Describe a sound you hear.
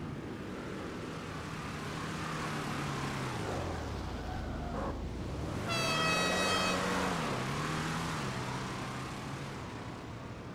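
A racing car engine roars past at speed and fades away.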